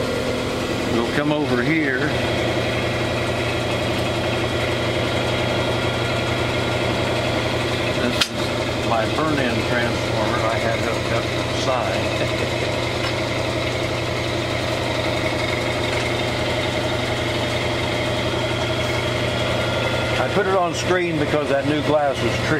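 An elderly man talks with animation close by.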